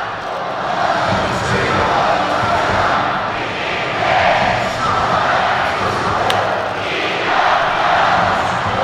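A large stadium crowd cheers and chants in waves.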